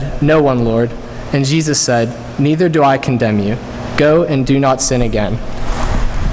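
A man speaks into a microphone in a large, echoing hall.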